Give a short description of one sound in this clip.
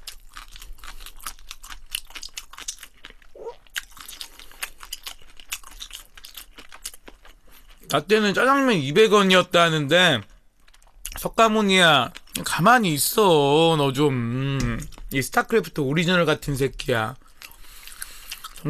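A young man chews food with wet smacking sounds.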